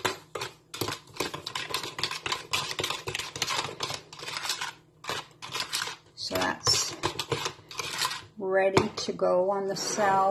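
A spoon scrapes and clinks against a cup while stirring.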